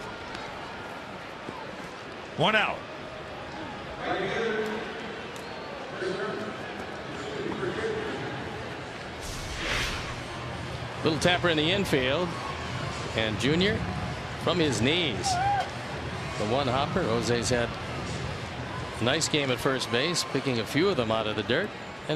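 A stadium crowd murmurs and cheers in the distance.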